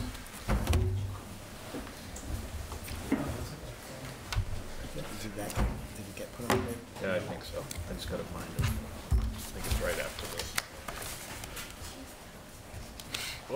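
Knocks and bumps sound against a microphone on a table.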